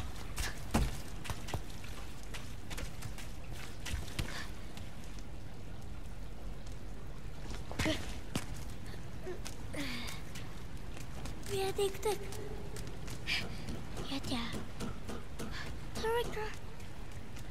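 A boy's footsteps tap on stone.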